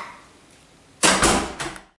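A door swings shut with a loud bang.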